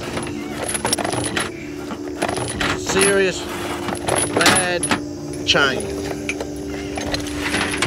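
Heavy metal chains clink and rattle as they are handled.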